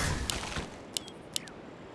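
A magic spell bursts with a crackle in a game.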